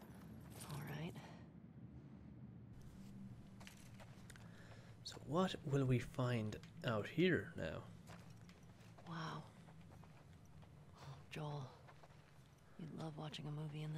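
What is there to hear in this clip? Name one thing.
Footsteps walk slowly across a carpeted floor.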